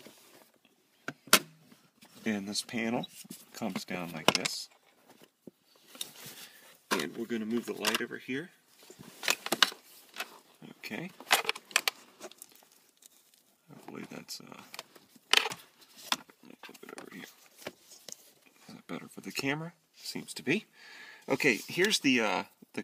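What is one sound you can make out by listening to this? Plastic parts click and rattle as they are handled.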